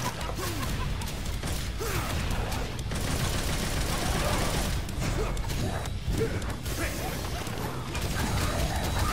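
Blades slash and strike flesh in quick bursts.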